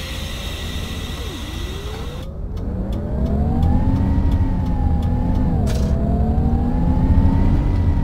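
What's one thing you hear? A bus engine revs up and rises in pitch as the bus pulls away.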